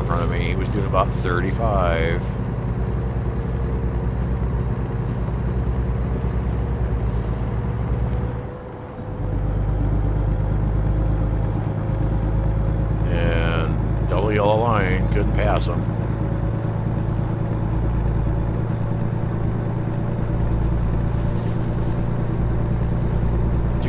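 A truck engine drones steadily at a low pitch while driving.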